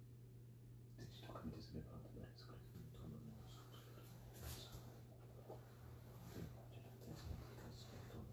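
A man murmurs quietly.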